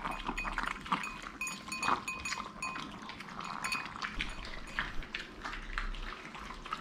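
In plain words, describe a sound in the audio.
Metal bowls clink and scrape on the floor.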